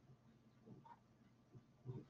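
A pastel pencil scratches softly on paper.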